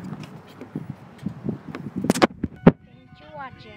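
A car door handle clicks open.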